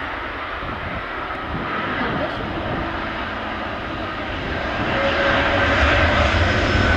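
Jet engines roar loudly and grow louder as a large airliner rolls near.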